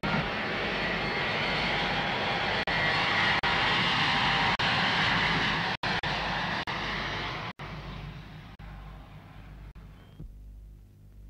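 A jet airliner's engines roar loudly and fade as the plane climbs away.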